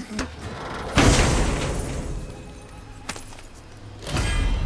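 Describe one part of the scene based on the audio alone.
A heavy chest creaks open with a loud magical whoosh.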